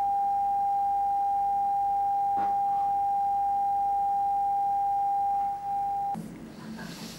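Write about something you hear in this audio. A steady high beep tone plays from a television.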